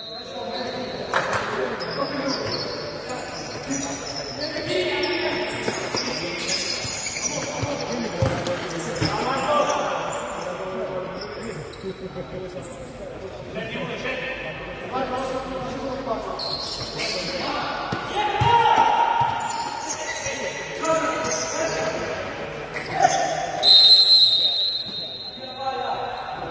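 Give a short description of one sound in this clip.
Shoes squeak on the hard floor.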